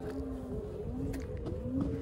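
A snowboard binding strap clicks as it is fastened.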